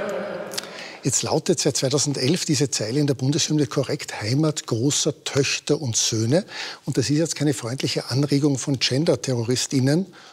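A middle-aged man speaks firmly and steadily, close up.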